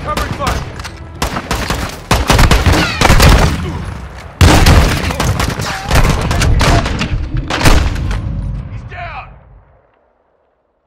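Shotgun blasts ring out loudly, one after another.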